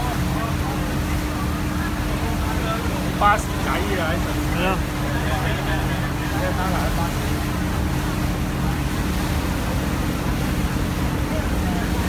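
A ship's engine drones steadily close by.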